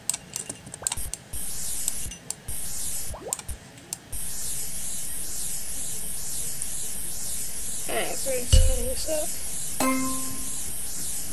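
A spray bottle hisses in short bursts, then sprays without a break.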